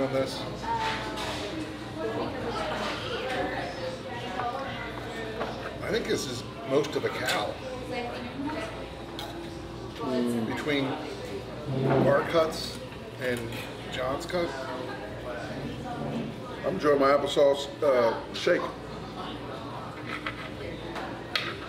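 A knife scrapes on a plate as meat is cut.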